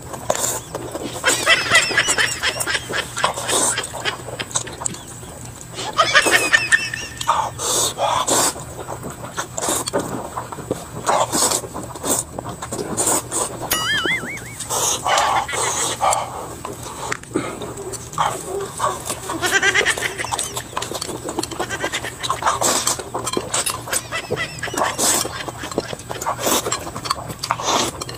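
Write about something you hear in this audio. A man slurps noodles into a clip-on microphone.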